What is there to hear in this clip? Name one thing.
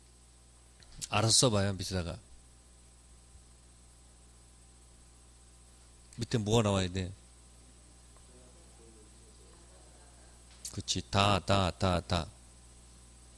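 A man speaks through a microphone in short bursts with pauses.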